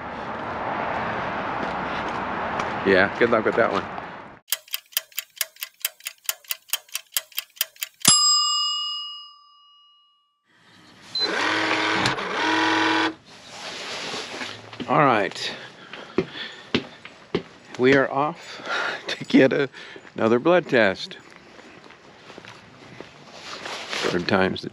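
An older man speaks calmly, close by.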